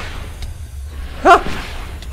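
A magic blast bursts with a sharp crackle.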